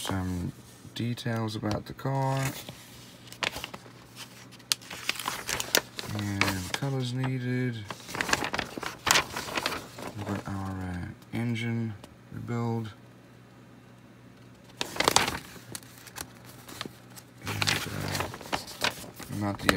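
Paper sheets rustle and crinkle as pages are turned.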